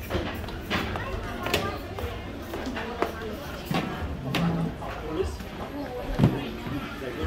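Many people chatter at a distance in a room.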